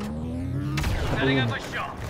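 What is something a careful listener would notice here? Laser blasters fire in a battle.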